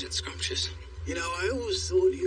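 An elderly man speaks in a low, sly voice close by.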